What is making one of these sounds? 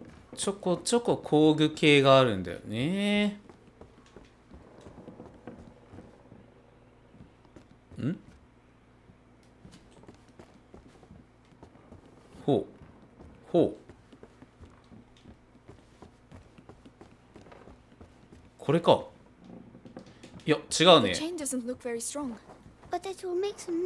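Footsteps tread on wooden floorboards.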